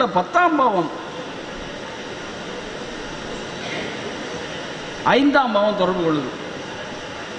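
An elderly man speaks with feeling into a microphone, heard through a loudspeaker.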